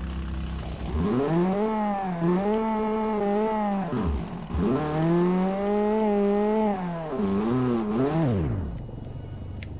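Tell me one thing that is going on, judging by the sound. A car engine revs up and down repeatedly.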